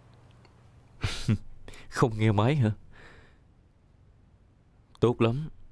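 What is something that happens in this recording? A young man talks calmly on a phone, close by.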